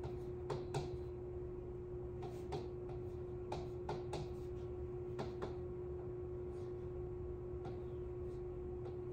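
A pen taps and clicks against a touchscreen board.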